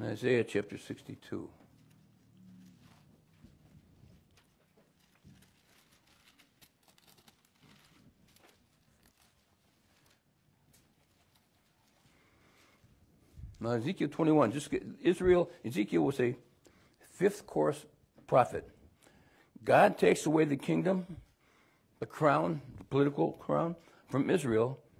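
An older man speaks calmly into a microphone, pausing now and then.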